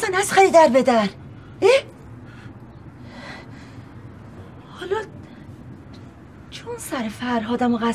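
A woman speaks emotionally and pleadingly close by.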